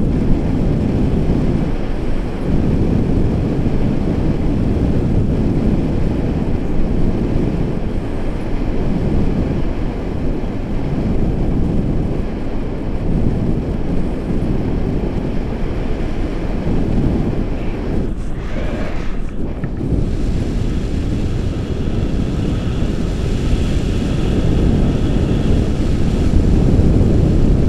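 Strong wind rushes and buffets loudly against a microphone outdoors.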